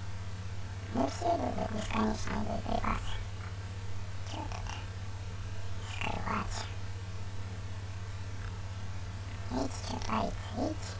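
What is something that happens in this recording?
A young man talks casually into a close headset microphone.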